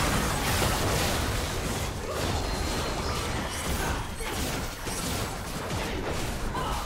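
Game spells and weapon hits crash and whoosh in a busy fight.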